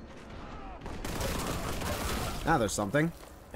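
A gun fires rapidly.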